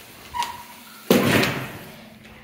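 A stall door latch clicks.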